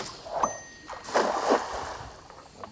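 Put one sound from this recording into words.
A cast net splashes into calm water close by.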